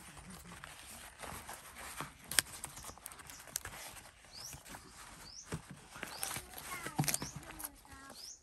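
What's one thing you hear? Stiff leaves rustle and crinkle as hands fold them.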